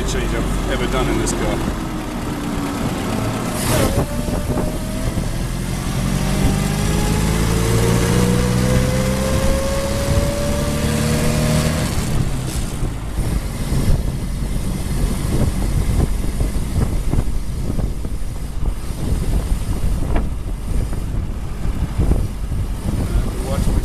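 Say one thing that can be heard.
An old car engine chugs and rises in pitch as the car speeds up.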